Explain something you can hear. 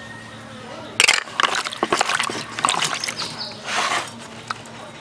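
Hands slosh and splash water in a plastic bowl.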